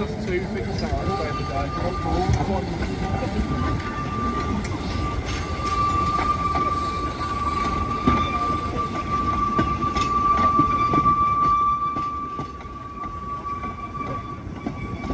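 A steam whistle blows a long, steady note.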